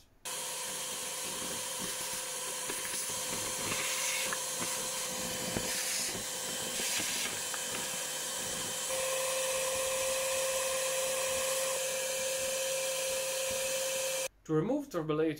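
A vacuum cleaner roars steadily as it sucks up ash.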